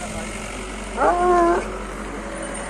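A dog barks briefly.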